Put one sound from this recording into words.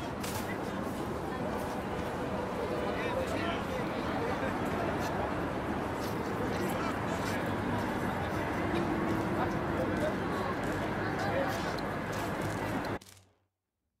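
A busy city street murmurs steadily outdoors.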